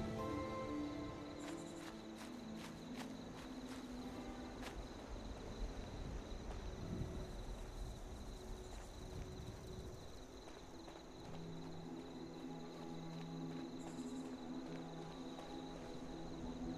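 Footsteps crunch over rubble.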